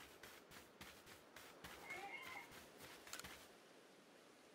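Footsteps run quickly over ground.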